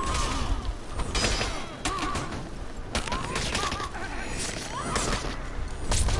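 Warriors grunt and shout as they fight.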